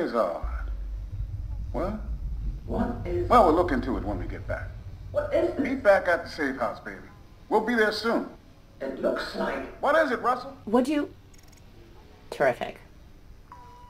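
A middle-aged man speaks with animation through a crackly loudspeaker.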